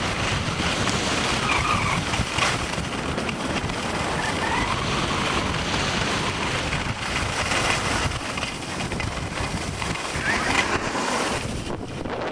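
Skis scrape and hiss over snow.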